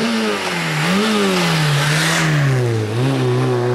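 Tyres hiss on tarmac as a car speeds past.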